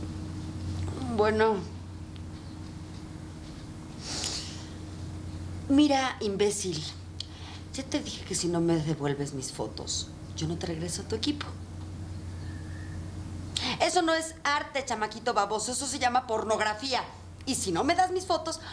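A young woman speaks sleepily and quietly into a phone, close by.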